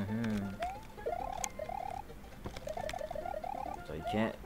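Bouncy, chirpy video game music plays.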